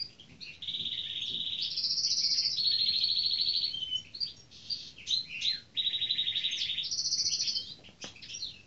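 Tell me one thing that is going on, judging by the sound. A hawk gives loud, shrill, repeated calls.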